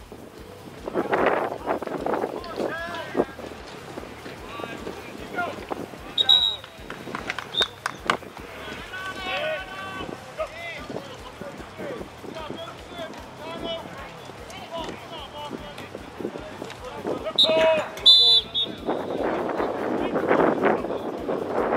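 A crowd cheers outdoors.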